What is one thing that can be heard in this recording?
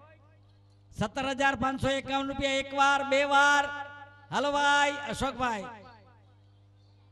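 An elderly man speaks with animation into a microphone, heard through loudspeakers.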